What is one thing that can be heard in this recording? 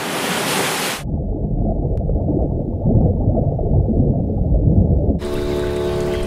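Water rumbles in a muffled way underwater.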